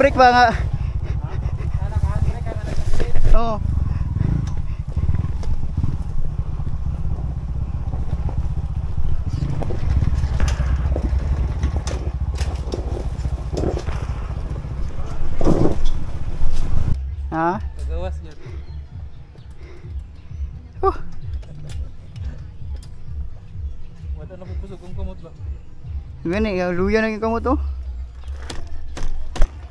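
A motorcycle engine runs and revs close by.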